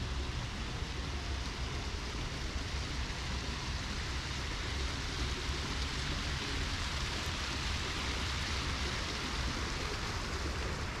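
A fountain splashes steadily nearby.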